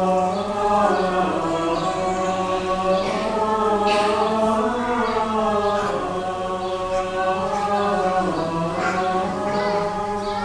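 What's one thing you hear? A group of male voices sings a slow, sustained chant in a large echoing hall.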